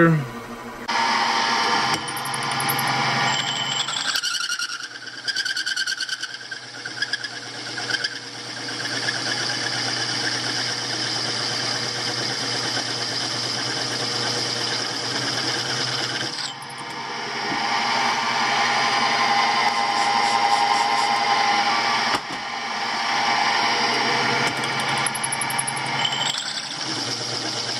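A cutter grinds and screeches through metal.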